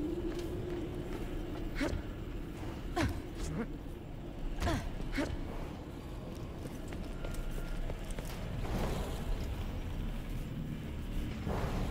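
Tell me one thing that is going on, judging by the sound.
Footsteps clank on a metal grating.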